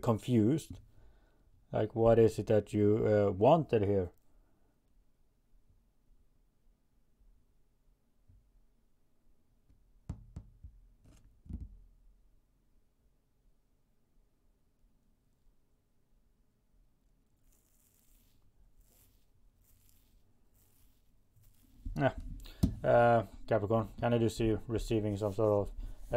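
A man speaks calmly and close by, with long thoughtful pauses.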